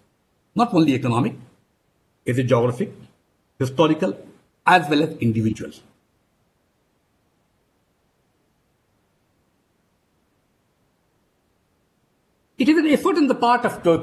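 A middle-aged man speaks calmly into a microphone over an online call, pausing between phrases.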